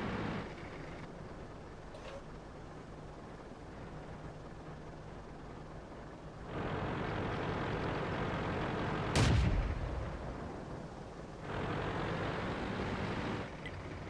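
A tank engine rumbles low and revs up in loud bursts.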